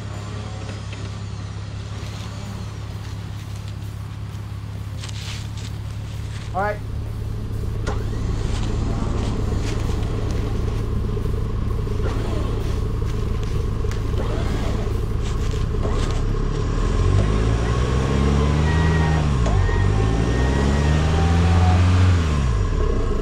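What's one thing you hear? A vehicle engine idles steadily nearby.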